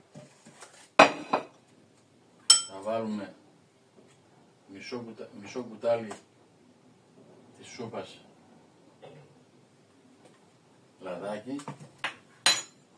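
Utensils clink against a pan.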